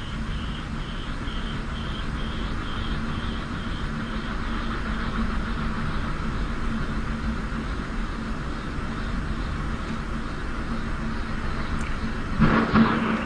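Wind turbine blades whoosh rapidly as they spin.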